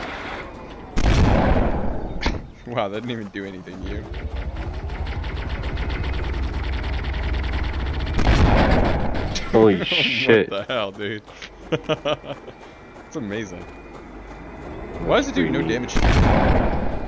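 A shotgun fires with loud blasts.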